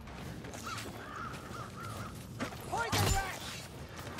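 A crossbow fires a bolt with a sharp snap.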